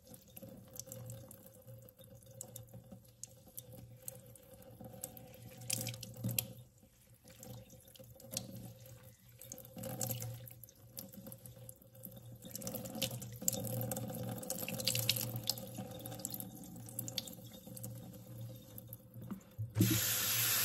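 Water pours from a jug and splashes onto wet hair.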